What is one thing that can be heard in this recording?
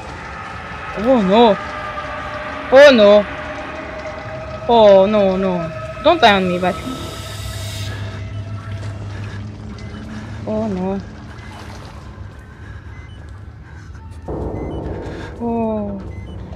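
A young woman speaks in short bursts into a close microphone.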